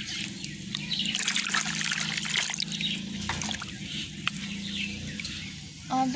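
A metal mug scoops water from a tub with a splash.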